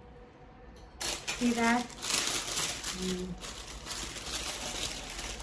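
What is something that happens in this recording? A paper bag crinkles and rustles.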